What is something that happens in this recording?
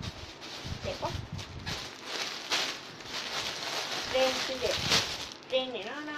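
Fabric rustles as a dress is handled.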